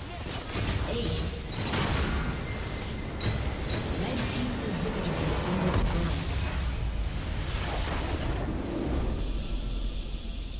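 Game spell blasts and clashing effects crackle loudly in a battle.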